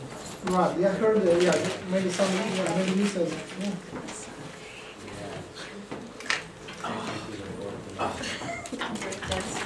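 Paper rustles as a man handles sheets.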